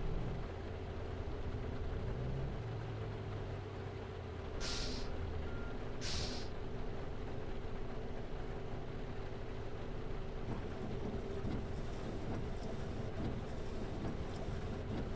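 Rain patters on a windscreen.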